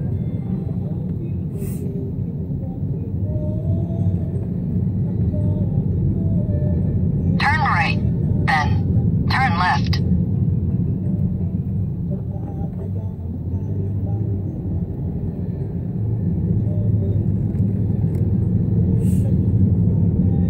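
A car's tyres rumble steadily over the road.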